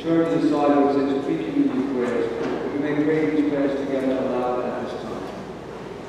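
A group of voices chants together in a large echoing hall.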